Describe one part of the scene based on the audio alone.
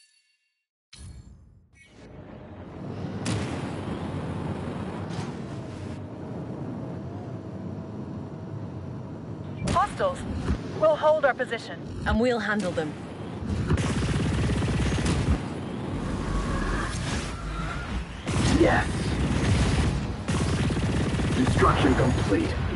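Spaceship engines roar steadily.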